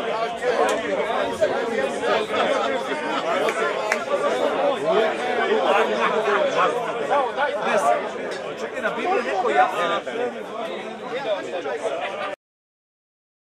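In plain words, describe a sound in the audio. A crowd of men and women chatter and talk over one another outdoors.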